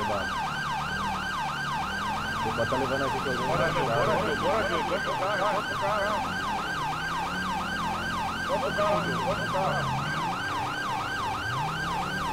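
A police siren yelps rapidly and steadily.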